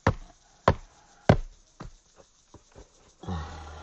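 Hands pat and slap packed soil.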